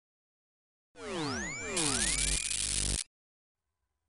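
A shimmering magic spell sound effect sweeps up and down.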